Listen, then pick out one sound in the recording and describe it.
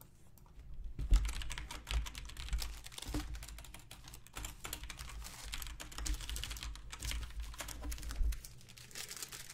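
Stacks of trading cards tap and slide against one another.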